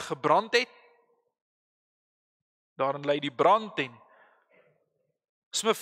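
A middle-aged man speaks calmly and slowly into a microphone, with pauses, in a room with a slight echo.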